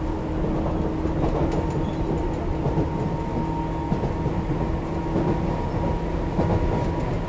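An electric train rumbles along the tracks with a steady hum.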